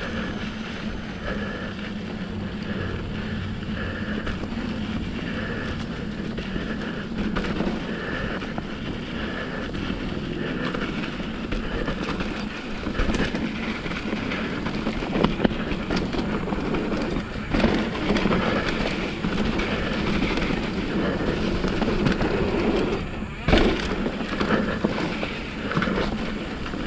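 Bicycle tyres roll and crunch over a dirt trail and dry leaves.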